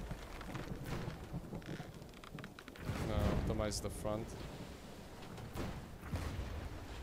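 Rain falls steadily in a storm.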